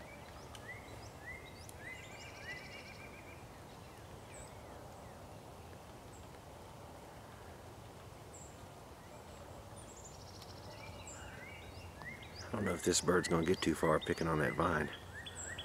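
A small woodpecker gives short, sharp chirping calls.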